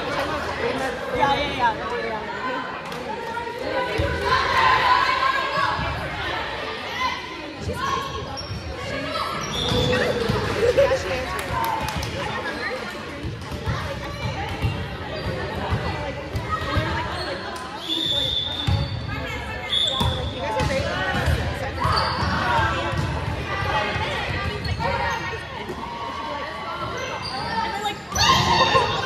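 Young women chatter and cheer loudly in a large echoing hall.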